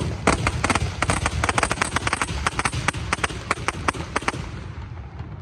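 Fireworks crackle and bang rapidly outdoors.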